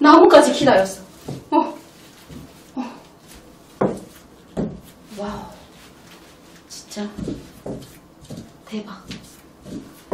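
High heels tap on a wooden floor.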